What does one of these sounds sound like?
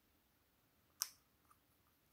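A plastic bottle cap snaps open with a sharp click.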